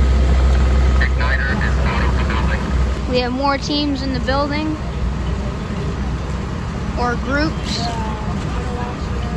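Men talk and call out to each other outdoors.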